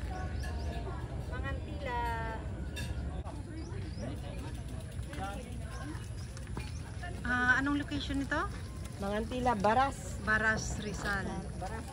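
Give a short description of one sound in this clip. A young woman talks with animation close by.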